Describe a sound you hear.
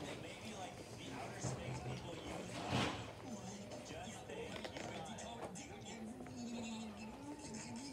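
A young girl crunches a cookie.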